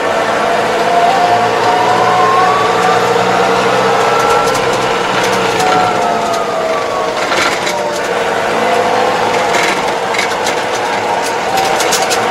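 A tractor engine hums and whines steadily inside the cab.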